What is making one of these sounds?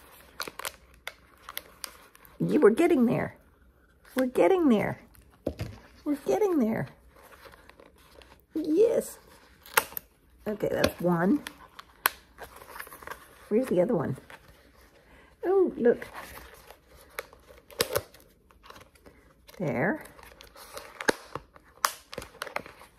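A plastic cone crinkles and clicks under handling.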